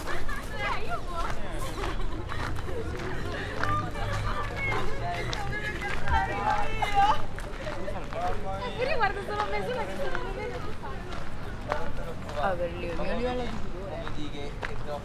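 Adults chat nearby outdoors.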